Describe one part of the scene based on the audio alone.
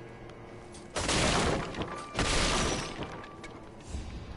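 Wooden poles crash and splinter as they break.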